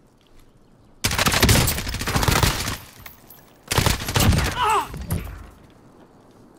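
Rapid rifle fire rattles in loud bursts.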